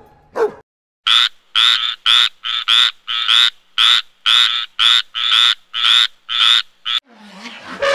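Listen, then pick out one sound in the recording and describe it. A frog croaks in quick, regular bursts.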